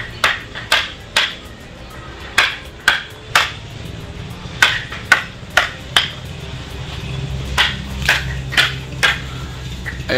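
A mallet knocks sharply on a chisel cutting into wood.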